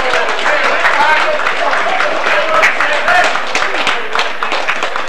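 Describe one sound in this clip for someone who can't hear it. A crowd of spectators cheers.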